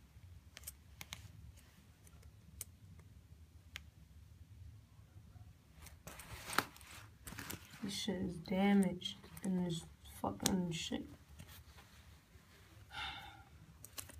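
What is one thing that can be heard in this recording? Fingers rub and rustle stiff cloth close by.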